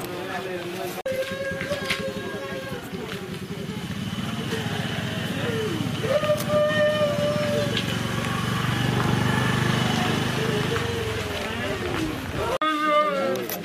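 A crowd of men and women talk outdoors.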